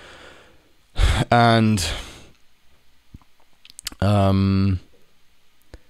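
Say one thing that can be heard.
A young man speaks close to a microphone in short, drawn-out bursts.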